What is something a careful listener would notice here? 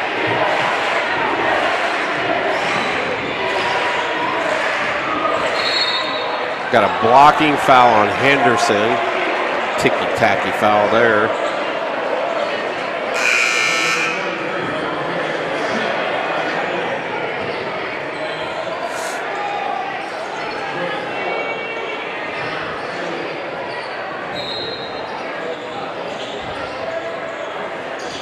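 A large crowd murmurs and chatters in an echoing gym throughout.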